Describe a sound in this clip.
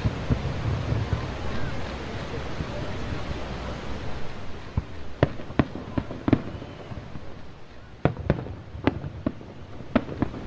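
Fireworks crackle and pop in rapid bursts.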